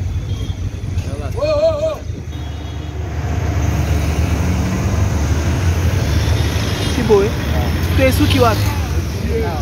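Car engines idle and rumble in heavy traffic outdoors.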